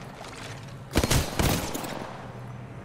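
Rapid gunshots crack from a game.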